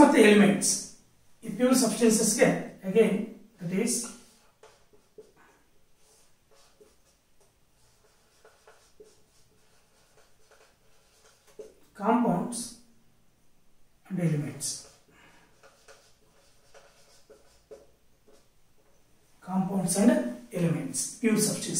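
A man speaks calmly and clearly, close by, in short bursts with pauses.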